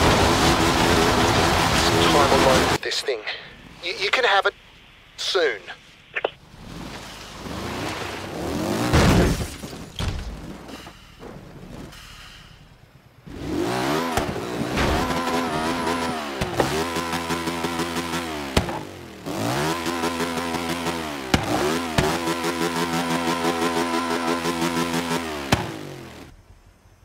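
A small car engine revs and buzzes loudly.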